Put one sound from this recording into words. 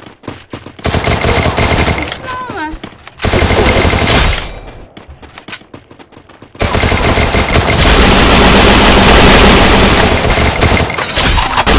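Bursts of automatic rifle fire ring out in a video game.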